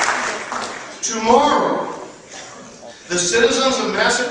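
A middle-aged man speaks emphatically through a microphone in a large room.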